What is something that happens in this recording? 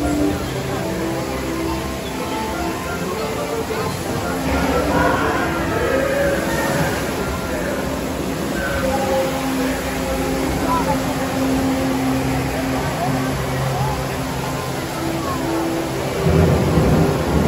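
A ride vehicle rumbles steadily along a track.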